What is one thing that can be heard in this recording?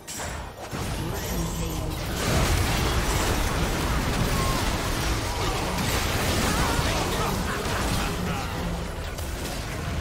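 Spell effects whoosh and explode in a fast game fight.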